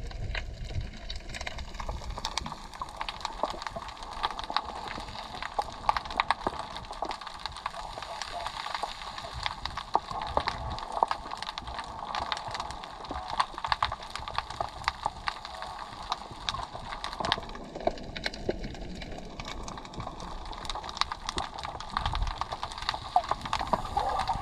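Water crackles and hisses softly, heard from underwater.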